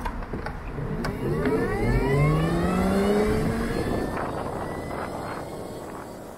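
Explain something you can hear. A motorcycle engine revs up and accelerates, rising in pitch.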